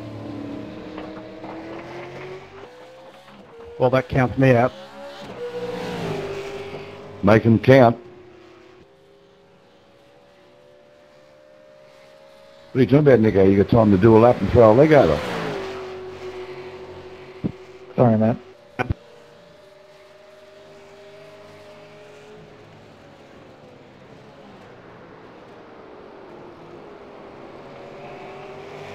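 Racing car engines drone and whine, rising and falling in pitch.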